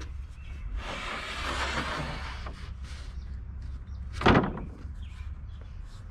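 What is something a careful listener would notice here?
A heavy wooden board knocks against a hard surface.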